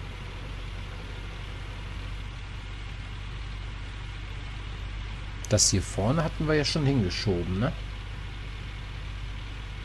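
A heavy excavator engine rumbles steadily.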